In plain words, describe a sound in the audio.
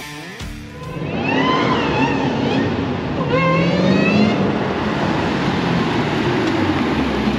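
A car engine roars loudly as the car speeds closer.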